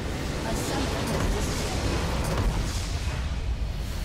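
A large structure blows apart with a heavy boom.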